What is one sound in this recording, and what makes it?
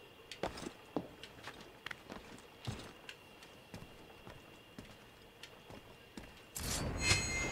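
Footsteps patter lightly across a tiled roof.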